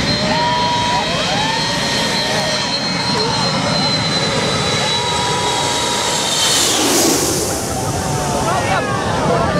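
A jet airliner roars low overhead with a high engine whine, swelling to a blast and then fading.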